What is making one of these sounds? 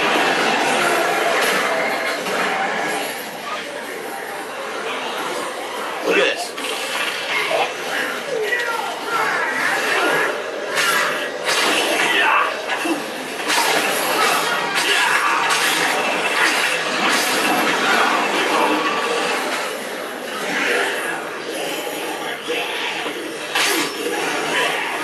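Zombies groan and moan in a crowd.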